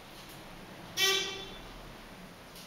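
An elevator chime rings.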